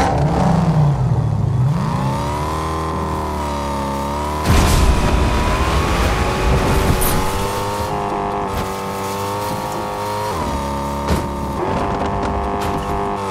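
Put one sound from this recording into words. A car engine revs and drones, rising and falling in pitch.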